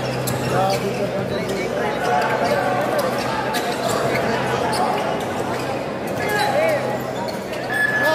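A large crowd cheers and chatters in a big echoing gym.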